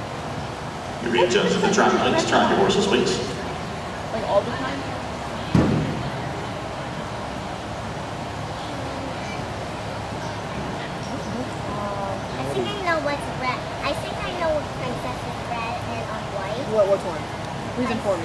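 Men and women chat quietly in the background.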